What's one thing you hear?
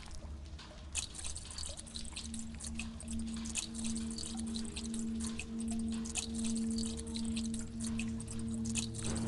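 Liquid glugs as fuel pours from a can.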